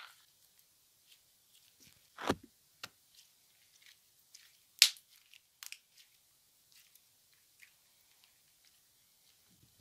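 Sticky slime crackles and squelches between fingers.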